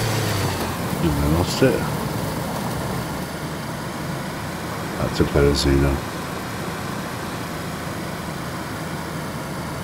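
Tyres rumble over grass and a gravel track.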